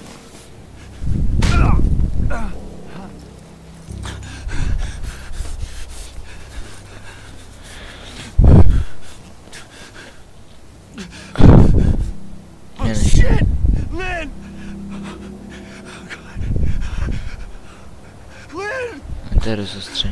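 A young man talks excitedly into a close microphone.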